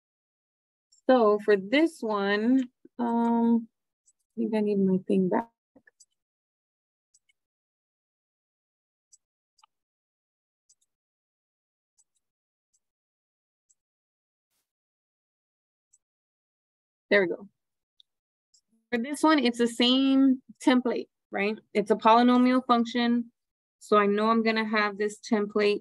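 A young woman speaks calmly and clearly through a microphone, as if explaining.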